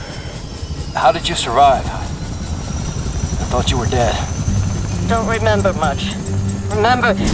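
A man speaks quietly and calmly.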